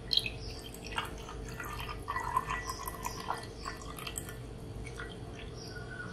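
Dark liquid pours into a glass mug.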